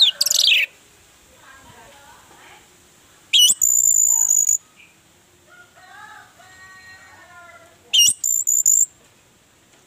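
An orange-headed thrush sings high whistled phrases.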